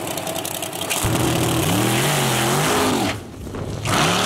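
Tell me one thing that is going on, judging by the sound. A big engine revs hard, rising and falling in pitch, as a truck launches away.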